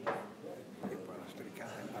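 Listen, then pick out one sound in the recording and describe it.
A billiard cue strikes a ball with a sharp click.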